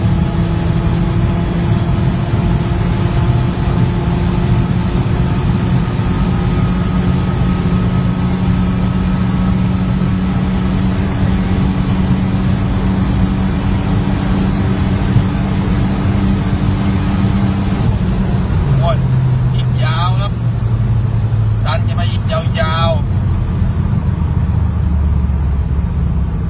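A car engine roars at high speed, holding a high steady drone before dropping lower as the car slows.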